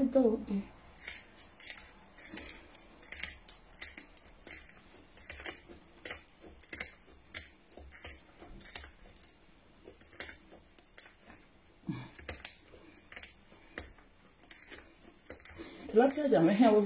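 Scissors snip and scrape rapidly at fish scales.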